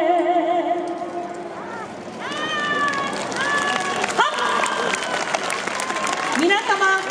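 A group of dancers shout out together.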